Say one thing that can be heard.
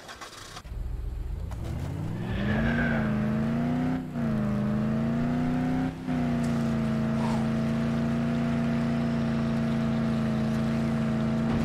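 A car engine starts up, revs and then hums steadily.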